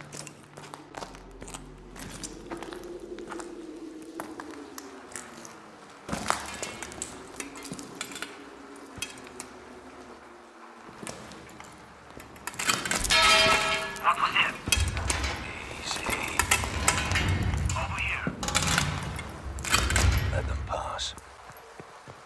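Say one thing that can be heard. Heavy boots clank on metal steps.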